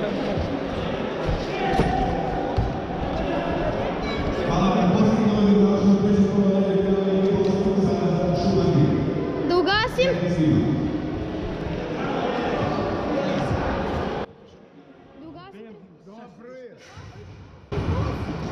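Men talk nearby in a large echoing hall.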